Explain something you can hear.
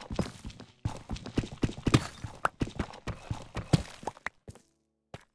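Pickaxe blows crack and crumble stone.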